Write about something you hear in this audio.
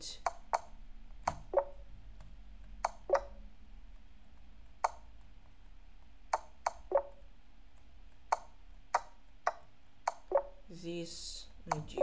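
Sharp wooden clicks of chess moves sound from a computer game, again and again.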